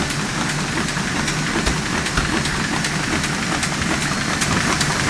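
A printing machine runs with a loud, steady rattling clatter.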